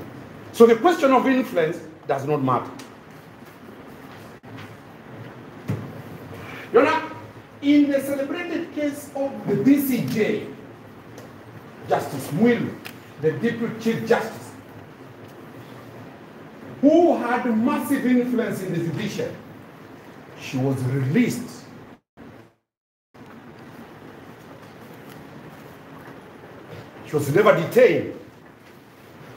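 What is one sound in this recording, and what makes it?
A man speaks loudly and forcefully in a room, in bursts with pauses.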